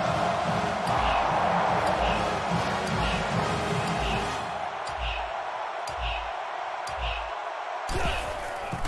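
A stadium crowd stomps and claps in a steady rhythm.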